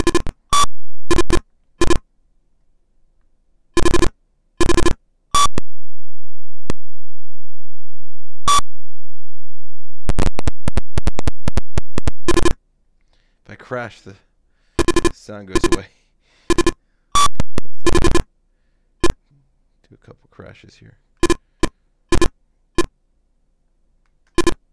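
Short electronic beeps sound again and again from a retro video game.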